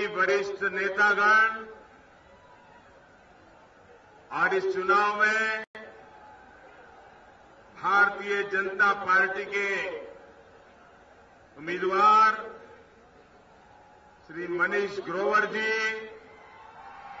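An elderly man speaks forcefully into a microphone over a loudspeaker, in bursts with pauses.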